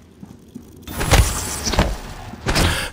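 A metal wrench strikes a mechanical creature with heavy clanging blows.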